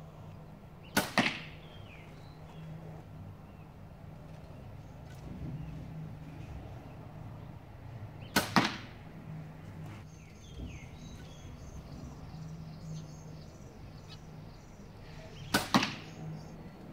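A bowstring snaps sharply as an arrow is shot.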